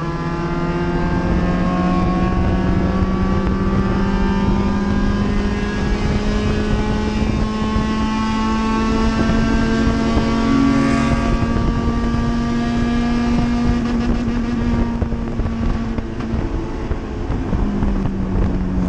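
A race car engine roars loudly from inside the cabin, its pitch slowly climbing through the gears.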